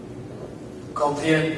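A young man begins to sing loudly in an echoing hall.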